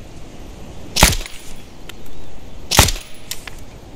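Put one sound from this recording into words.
A rifle fires two loud sharp shots.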